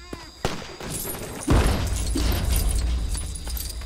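Small plastic pieces clatter and scatter as something breaks apart.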